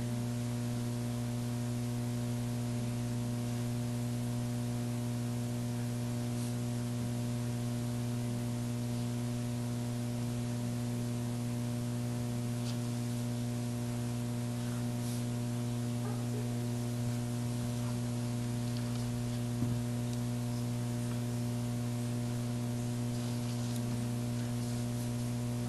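Pens scratch softly on paper.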